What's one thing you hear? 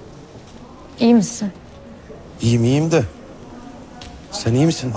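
A young man speaks firmly, close by.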